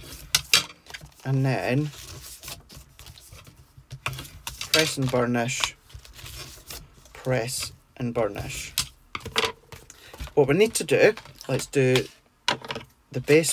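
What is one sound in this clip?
Paper rustles and crinkles as it is folded and smoothed by hand.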